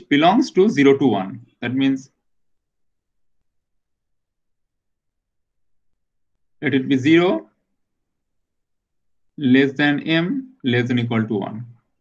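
A man speaks calmly through a microphone in short bursts, with pauses.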